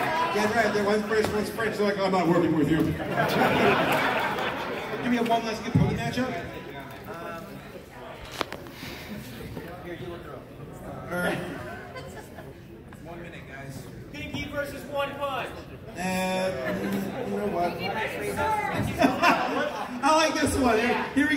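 A man speaks with animation into a microphone, heard over loudspeakers in a large echoing hall.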